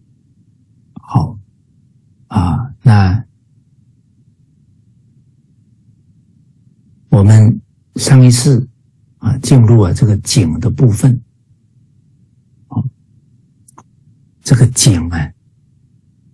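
A middle-aged man speaks calmly in short bursts, heard through an online call.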